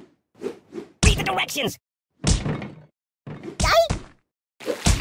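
A metal canister bangs and thuds as it is thrown around.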